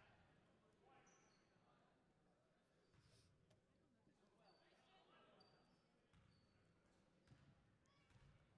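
Players' sneakers squeak on a hard court.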